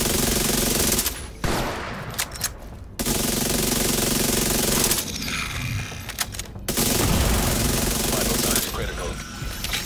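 Automatic gunfire rattles in loud, rapid bursts.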